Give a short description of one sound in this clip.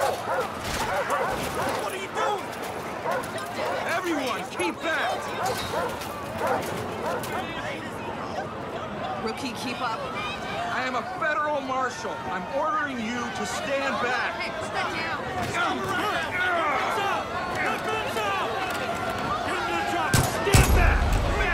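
A crowd of men and women shouts and jeers all around.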